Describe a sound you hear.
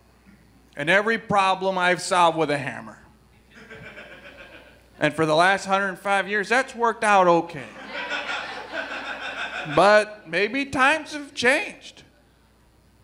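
A man speaks loudly on a stage, heard through a microphone.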